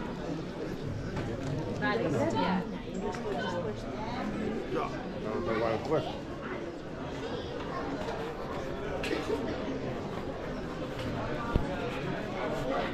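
A crowd of adults chatter nearby.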